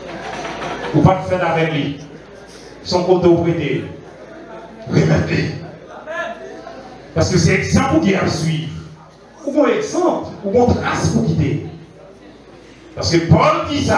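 A young man preaches with animation into a microphone, heard through loudspeakers in an echoing hall.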